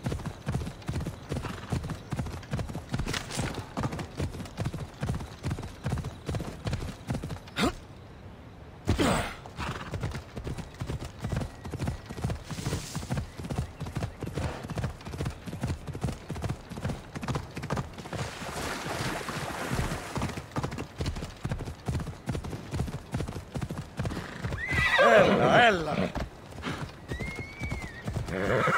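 A horse gallops with quick, steady hoofbeats on soft ground.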